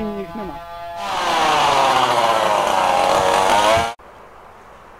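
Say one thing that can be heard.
A chainsaw runs loudly at high speed.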